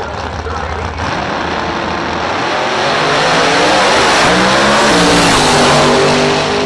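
Two drag racing engines roar loudly as the cars launch and race closer.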